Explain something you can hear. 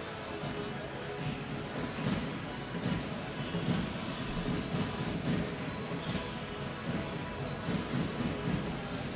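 Basketballs bounce on a hard court in a large echoing hall.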